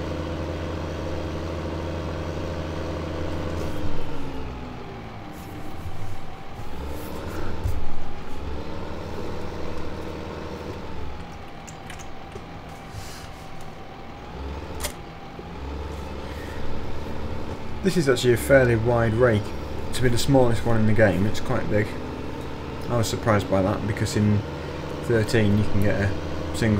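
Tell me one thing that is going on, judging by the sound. A tractor engine rumbles steadily.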